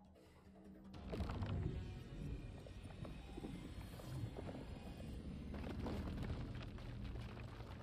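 A massive stone door rumbles and grinds.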